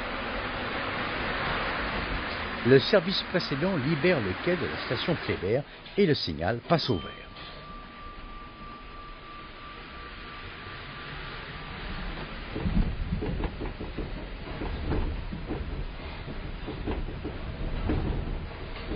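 A subway train rumbles and clatters along the rails.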